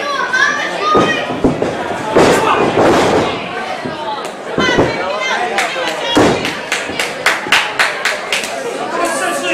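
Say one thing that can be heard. Bodies thump on a wrestling mat.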